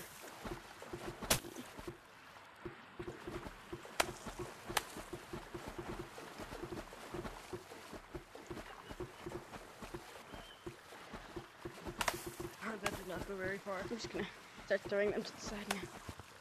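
Bubbles burble softly underwater.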